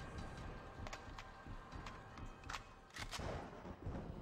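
Gunshots crack in short bursts with a ringing echo.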